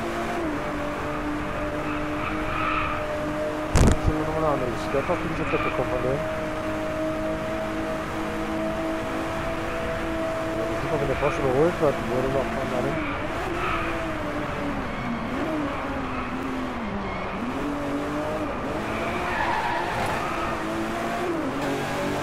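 A car engine roars at high speed, its pitch holding high and then dropping as it slows before climbing again.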